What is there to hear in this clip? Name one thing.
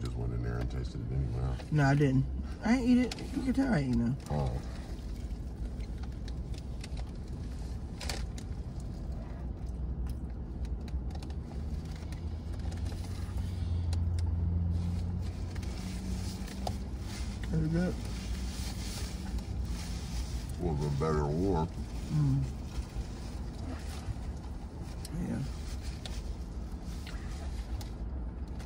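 Paper wrappers crinkle and rustle.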